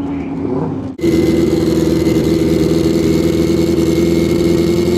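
A Pro Street drag racing motorcycle idles at the start line.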